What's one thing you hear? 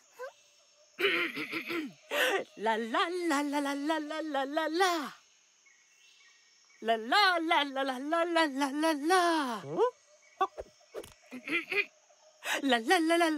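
A cartoon character speaks in a high, animated voice.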